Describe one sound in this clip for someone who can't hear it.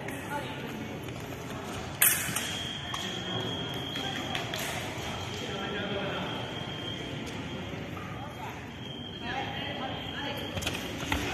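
Footsteps shuffle and stamp on a hard floor in a large echoing hall.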